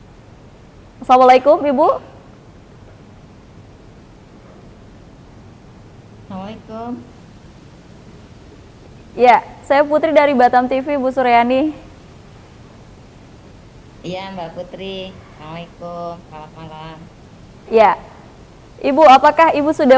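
A woman speaks through an online call, pausing between phrases.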